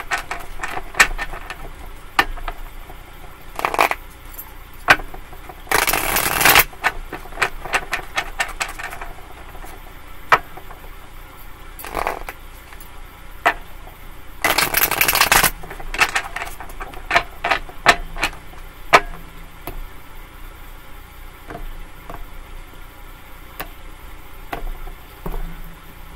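Cards tap and slide on a table.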